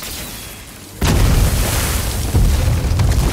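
A frozen mass bursts apart with a loud crash.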